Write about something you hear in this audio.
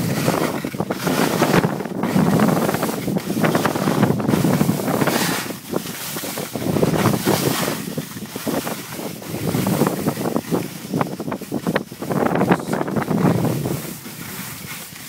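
Skis scrape over hard, icy snow.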